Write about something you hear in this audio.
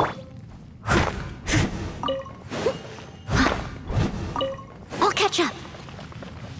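A metal blade strikes rock with sharp, ringing clangs.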